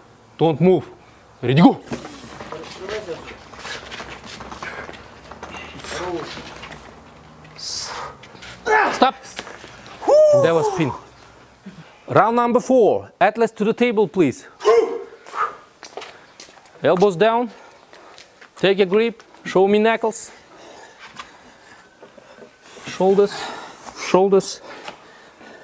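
A man calls out loud, sharp commands.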